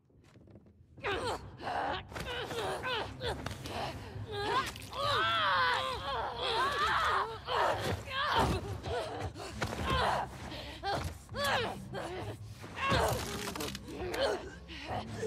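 Bodies thump and scuffle in a close struggle.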